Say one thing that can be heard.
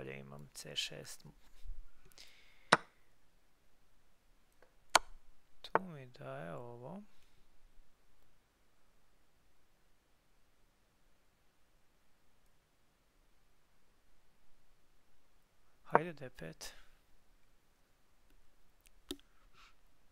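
Chess pieces click as they are moved.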